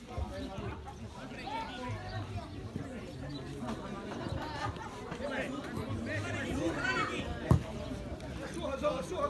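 Men shout and call out to each other across an open field.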